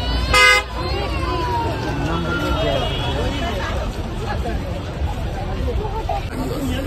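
A crowd of people chatters in a busy outdoor market.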